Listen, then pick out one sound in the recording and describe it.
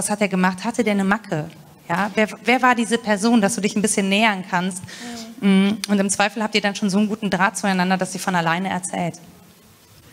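A young woman speaks calmly into a microphone in a room with slight echo.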